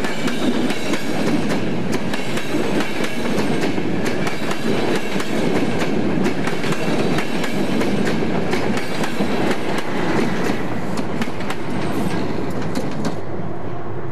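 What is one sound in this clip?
A train rumbles past close by and fades away.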